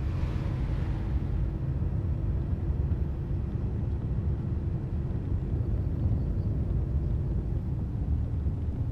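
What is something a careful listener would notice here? Tyres crunch and rumble over a rough gravel road.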